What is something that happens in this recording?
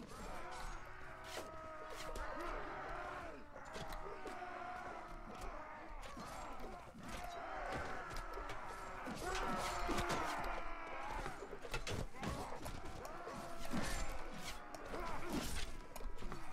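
Metal weapons clash with sharp strikes.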